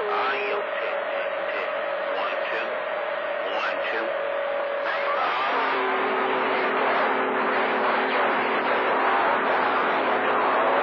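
Static hisses and crackles loudly from a radio receiver.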